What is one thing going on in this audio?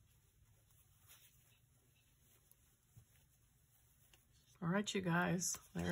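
Twine rustles softly as it is pulled and tied.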